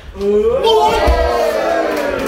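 A body slams onto a mat with a heavy thud.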